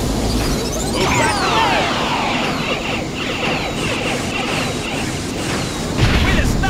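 Upbeat video game music plays throughout.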